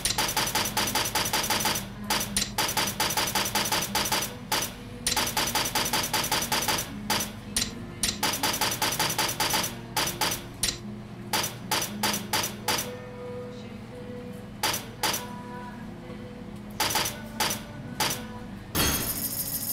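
Quick menu clicks tick in rapid succession.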